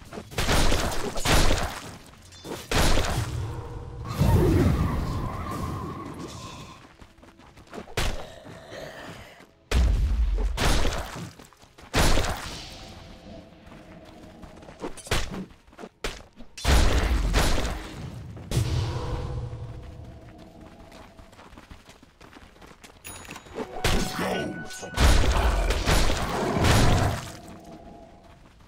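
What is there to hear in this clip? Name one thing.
Game spells and weapon hits burst and crash again and again.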